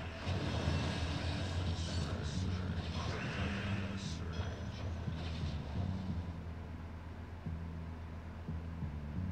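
Game music with a deep bass line plays steadily.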